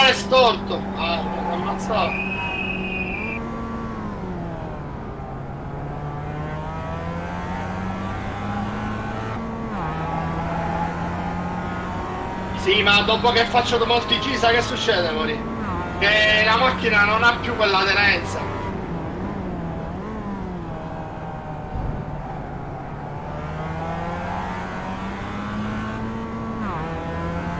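A racing car engine drones, rising and falling in pitch as it shifts gears.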